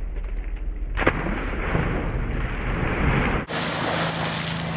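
A polar bear cub jumps into a pool with a heavy splash.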